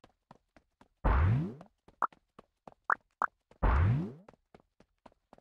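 A deep whooshing boom swells and fades.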